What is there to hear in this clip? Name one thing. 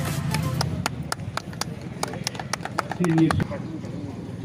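A small crowd claps their hands.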